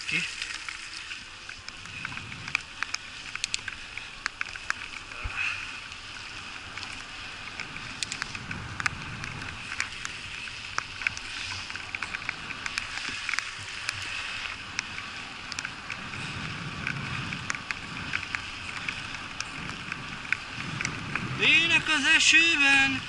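Bicycle tyres hiss and crackle on a wet path.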